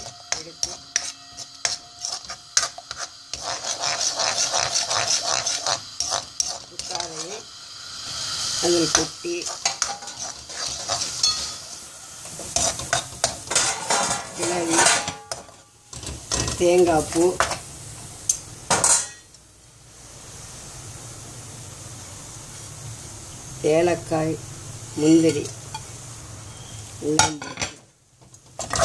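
A metal spatula scrapes and clatters against a pan.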